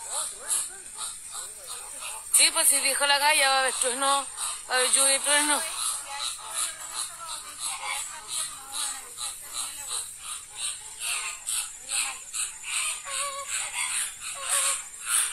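Flamingos honk and gabble nearby.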